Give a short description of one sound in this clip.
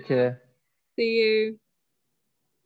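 A woman speaks briefly and cheerfully over an online call.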